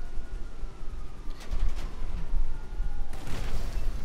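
A helicopter whirs overhead.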